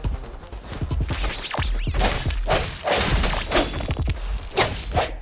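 A sword swishes through the air in quick slashes.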